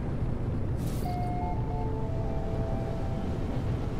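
A short electronic chime sounds a few soft tones.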